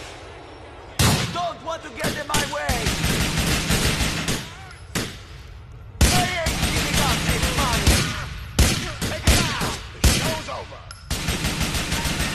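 Gunshots ring out rapidly in an echoing hall.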